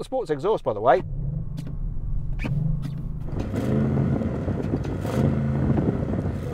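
A car engine idles with a low rumble and burbles.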